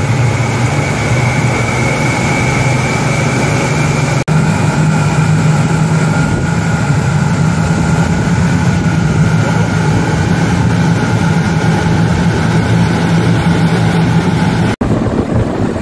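Powerful boat engines roar steadily close by.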